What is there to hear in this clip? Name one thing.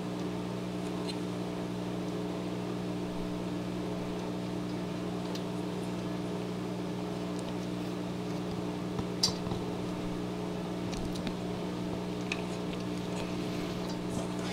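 Carbon frame plates clack and click against each other as they are handled.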